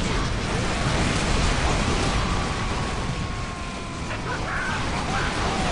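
Flamethrowers roar and hiss.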